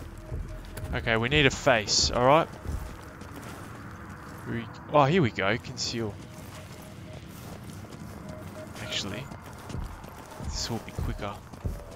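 A young man talks close to a microphone, in short bursts.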